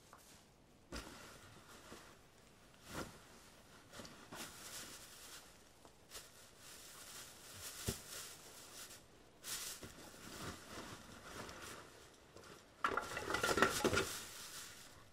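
Footsteps crunch through dry leaves on a forest floor.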